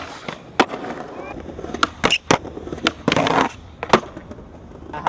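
A skateboard clacks and slaps sharply against the ground.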